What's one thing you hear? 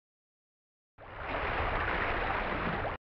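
Water washes softly outdoors.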